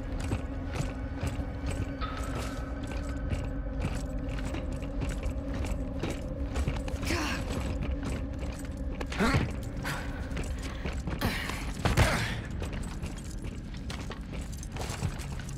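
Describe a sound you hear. Heavy armoured footsteps clank on a metal grating.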